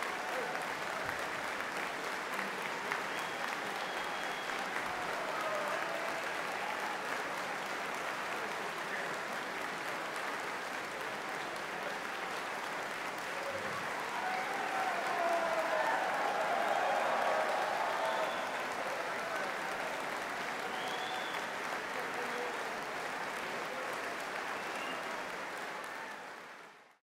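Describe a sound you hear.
A large audience applauds loudly in an echoing hall.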